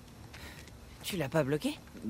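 A young man speaks briefly and calmly, close by.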